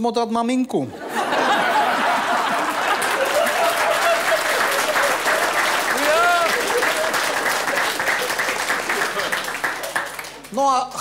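A crowd applauds with steady clapping.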